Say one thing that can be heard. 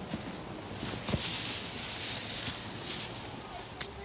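Loose straw rustles as it is tossed.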